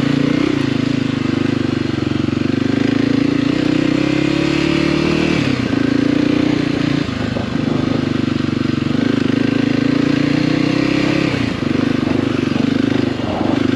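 Tyres crunch over rocky dirt.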